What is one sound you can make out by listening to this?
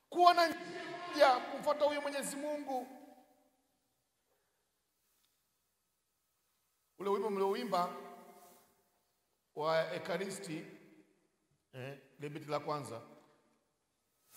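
A man preaches forcefully into a microphone, with long pauses.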